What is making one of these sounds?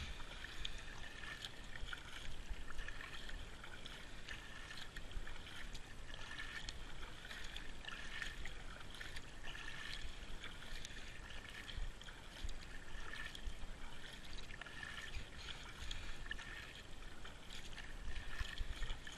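A paddle splashes and dips into calm water in a steady rhythm.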